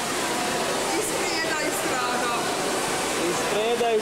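Water bubbles and churns.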